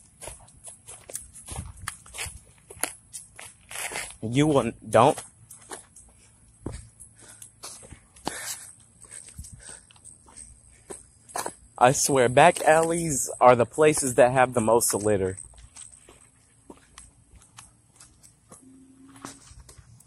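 Footsteps tap along on a paved path.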